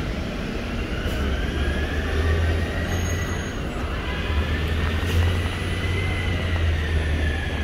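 A bus engine hums low and whines as the bus pulls away.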